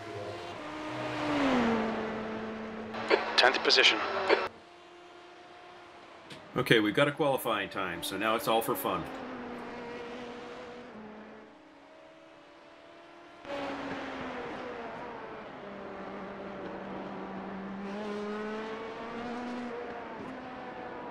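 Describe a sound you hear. A racing car engine hums steadily, rising and falling as it changes gear.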